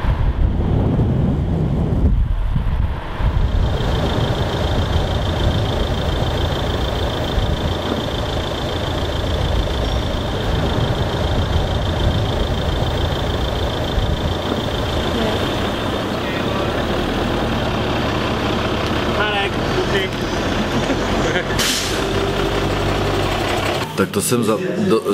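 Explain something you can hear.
Wind rushes and tyres roar on a road while moving.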